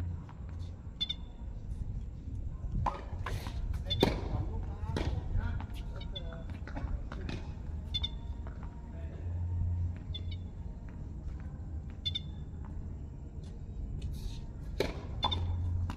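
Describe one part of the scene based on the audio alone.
Tennis balls bounce on a hard court.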